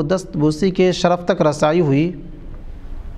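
A man recites in a melodic chanting voice through a close microphone.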